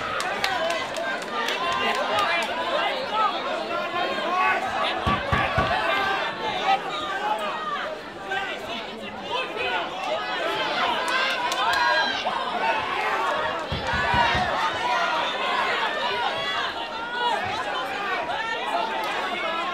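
Boxing gloves thud against a fighter in quick punches.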